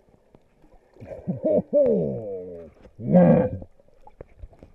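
A snorkeler's breath bubbles and gurgles up close.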